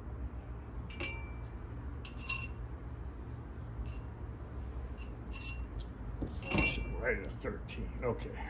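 A metal rod clinks against a steel press.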